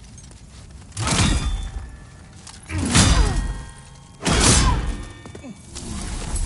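A heavy sword swings and strikes with loud whooshing impacts.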